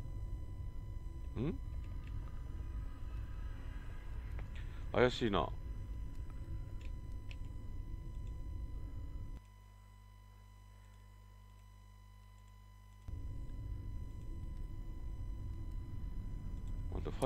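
A low, steady rumble drones.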